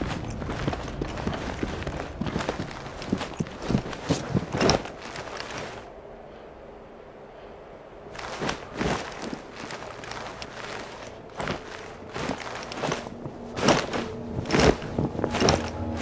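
Quick footsteps and hand grips knock on stone as someone runs and climbs.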